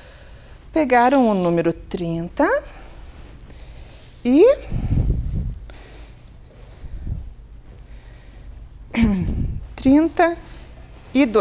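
A woman speaks with animation into a microphone.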